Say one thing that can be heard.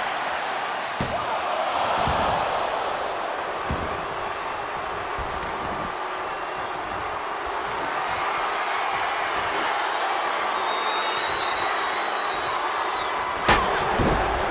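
Bodies slam onto a wrestling ring mat with heavy thuds.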